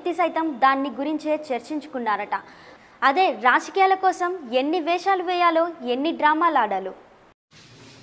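A young woman reads out the news steadily through a microphone.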